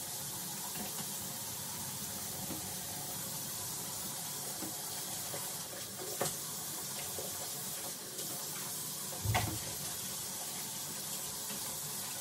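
A sponge scrubs a sink counter.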